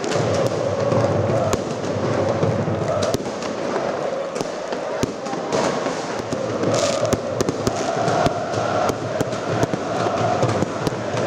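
Aerial fireworks bang and crackle overhead.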